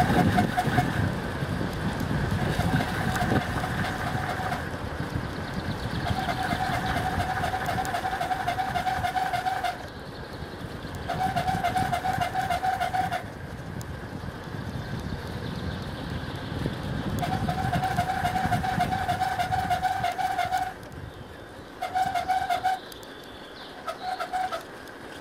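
Wheels roll steadily over smooth asphalt.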